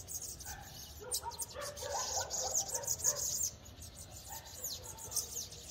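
Small birds chirp and twitter nearby in high, quick calls.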